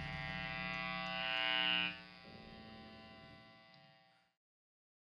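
A band plays a final chord that rings out and fades away.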